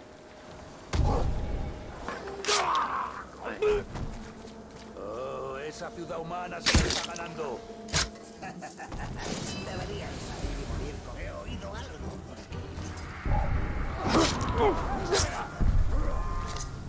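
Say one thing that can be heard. Sword blows strike and clang in a fight.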